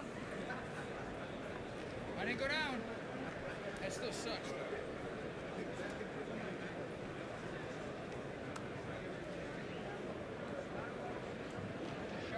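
A large crowd murmurs and chatters in an echoing arena.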